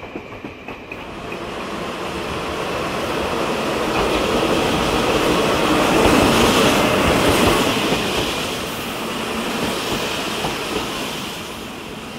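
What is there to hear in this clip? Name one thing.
A train approaches with a swelling rumble and roars past close by.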